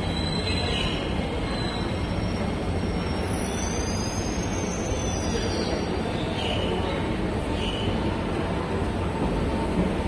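A train hums as it stands at a station platform.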